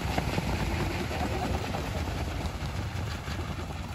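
Many feet pound on dry ground as a crowd runs close by.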